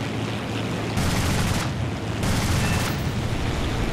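Machine guns fire in short bursts.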